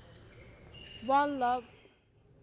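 A young woman shouts loudly in triumph.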